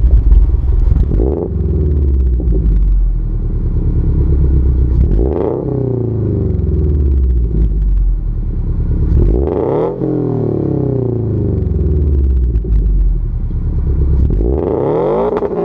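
Exhaust pops and crackles as the revs drop.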